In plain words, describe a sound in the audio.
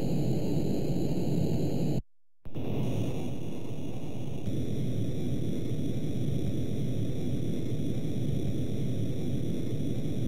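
A jet engine roars low and steady.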